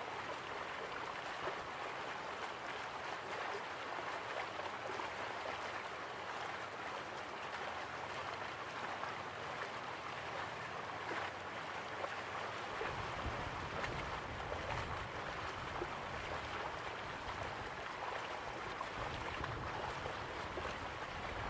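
Waterfalls rush and splash steadily.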